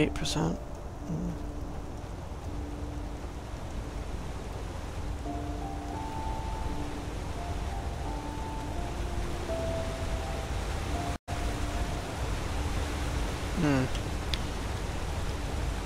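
A flame crackles softly close by.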